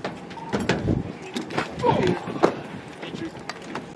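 Boots thump onto the metal bed of a pickup truck.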